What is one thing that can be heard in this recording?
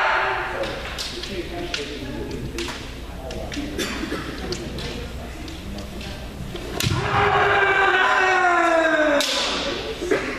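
Bamboo swords clack sharply against armour.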